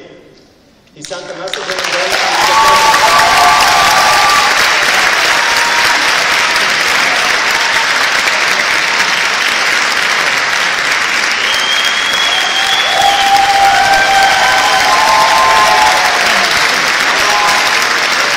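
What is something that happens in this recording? A large audience claps loudly.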